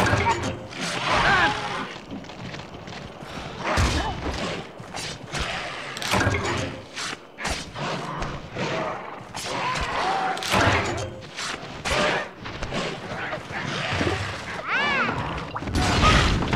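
A creature shrieks sharply.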